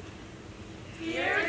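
A choir of children starts singing loudly.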